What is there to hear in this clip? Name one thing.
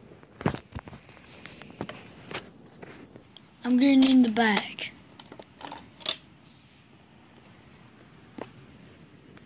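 Plastic toy parts click and knock together.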